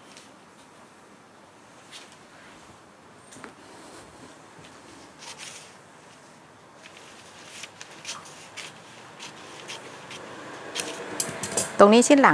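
Paper rustles and slides across a table.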